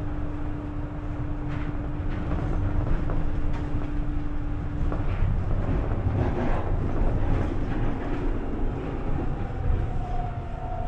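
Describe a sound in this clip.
A train rumbles steadily, heard from inside a carriage.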